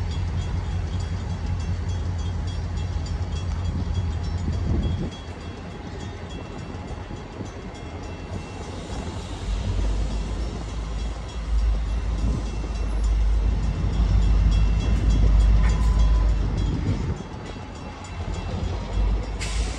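A freight train rolls past close by, its wheels rumbling and clacking on the rails.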